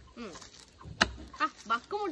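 A knife chops into a fruit with a sharp thud.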